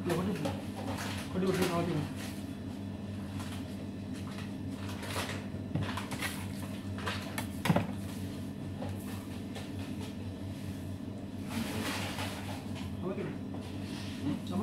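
Hands slap and squelch wet dough on a metal counter.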